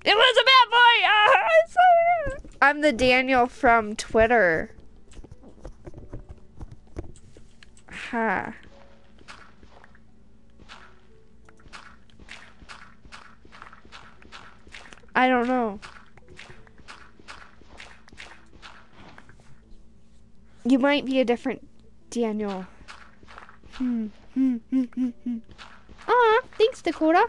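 A young woman talks animatedly into a microphone, close up, in bursts with pauses.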